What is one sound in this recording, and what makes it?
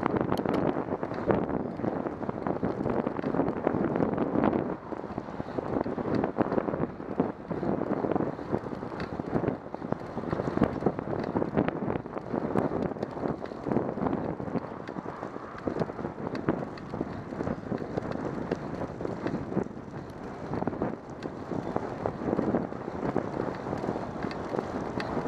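Wind rushes and buffets loudly past a moving bicycle.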